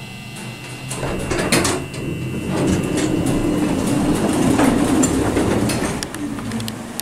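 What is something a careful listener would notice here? Elevator doors slide open with a low rumble.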